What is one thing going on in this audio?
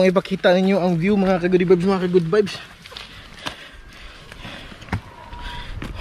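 Leaves rustle as a man brushes through bushes.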